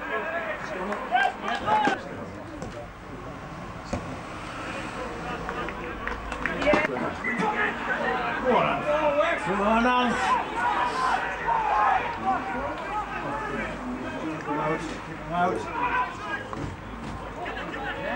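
Rugby players shout to one another across an open field.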